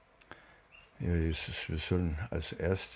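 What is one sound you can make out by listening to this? An elderly man speaks calmly, close to the microphone.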